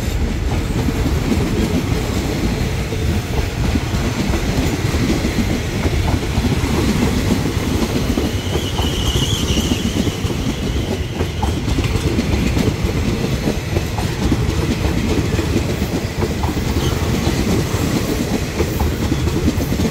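A passenger train rumbles and rattles steadily along the track, heard up close from the carriage.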